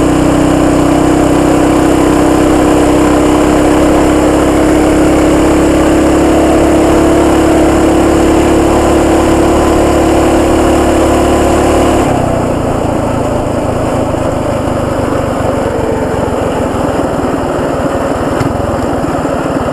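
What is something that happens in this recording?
Wind rushes past loudly as the bike rides along.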